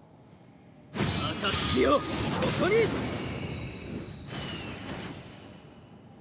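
Flames crackle and whoosh.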